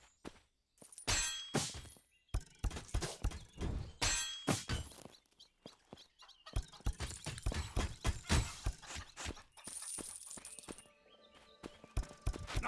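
Weapons clash and strike in a noisy fight.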